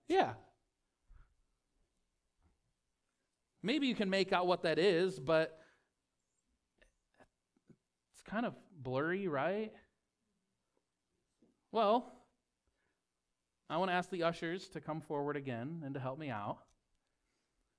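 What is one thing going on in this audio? A man speaks calmly through a microphone, with pauses between phrases.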